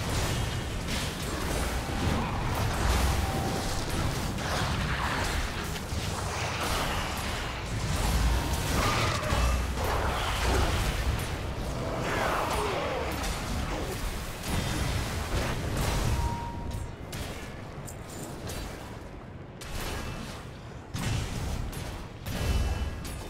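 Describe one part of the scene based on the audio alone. Fire spells roar and crackle in a busy game battle.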